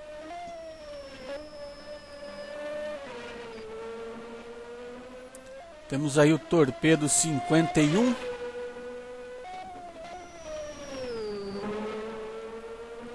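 A racing car engine whines at high revs, shifting pitch as the car changes gear.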